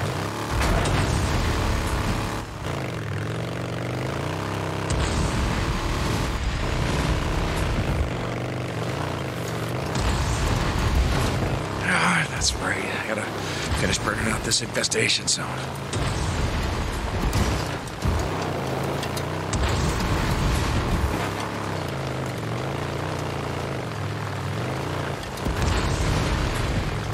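A motorcycle engine rumbles and revs as it rides along.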